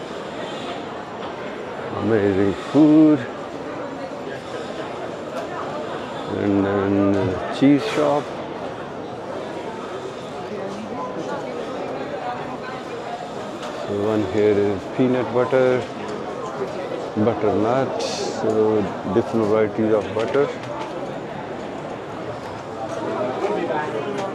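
A crowd murmurs steadily all around.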